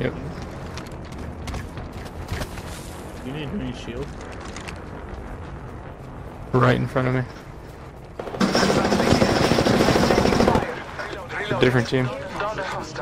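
Footsteps patter on dirt and grass.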